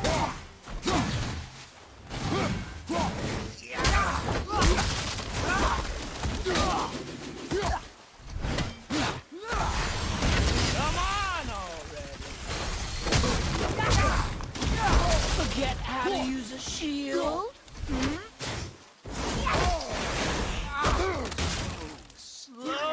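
Heavy blows thud and crash in a fight.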